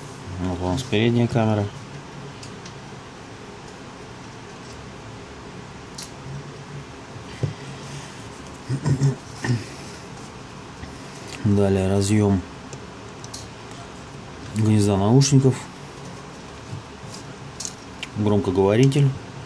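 Small plastic and metal parts click softly as a phone is taken apart by hand.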